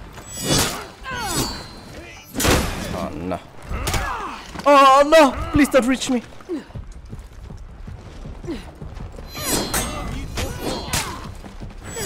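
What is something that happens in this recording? Swords clash and strike in a video game melee fight.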